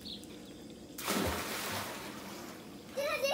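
A child jumps into water with a loud splash.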